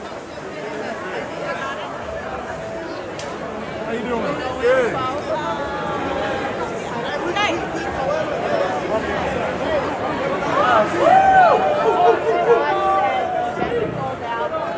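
A large crowd chatters and cheers in an echoing indoor hall.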